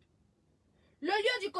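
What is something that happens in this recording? A young woman speaks close by with animation.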